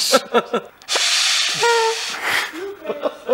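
A man blows a party horn.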